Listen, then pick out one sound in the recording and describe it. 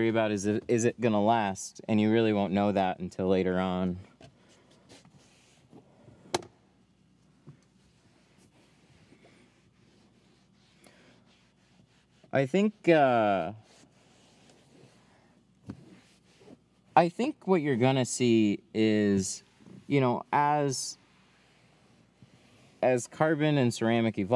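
A cloth rubs softly across a hard plastic surface.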